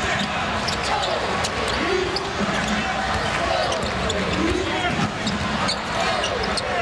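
A large crowd roars in a big echoing arena.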